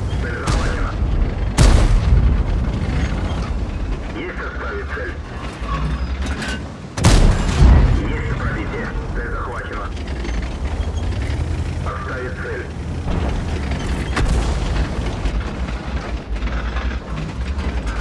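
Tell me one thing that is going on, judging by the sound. A heavy tank engine rumbles and clanks steadily.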